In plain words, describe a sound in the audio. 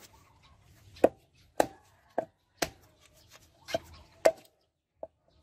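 A hatchet chops into a log.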